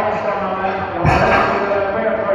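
Weight plates on a barbell clank in an echoing hall.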